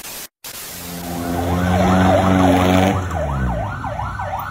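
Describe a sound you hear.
A truck engine rumbles as the truck drives off.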